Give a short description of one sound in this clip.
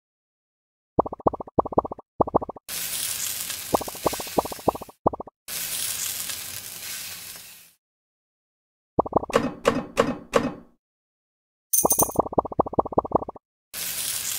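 Short bright game pops sound in quick bursts as balls stack up.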